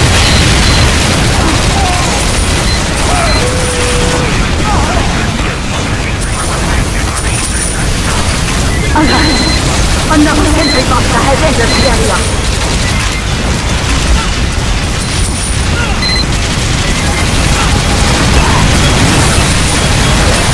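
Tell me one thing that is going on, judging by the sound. Gunfire and explosions boom and crackle nonstop.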